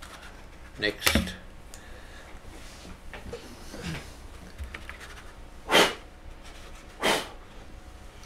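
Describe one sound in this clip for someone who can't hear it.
A heavy metal object is set down on a table with a dull knock.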